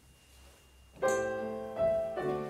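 A piano begins to play.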